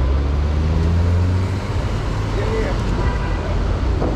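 A truck engine idles nearby.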